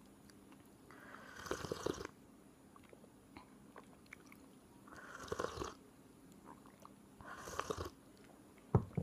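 A young woman sips and gulps a drink close up.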